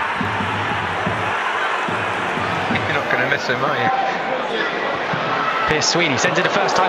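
A large crowd murmurs and cheers steadily in an open stadium.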